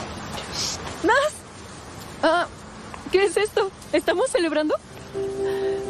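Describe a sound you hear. A young woman speaks cheerfully, close by.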